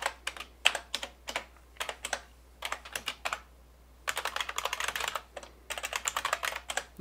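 Keys clatter quickly on a keyboard in bursts.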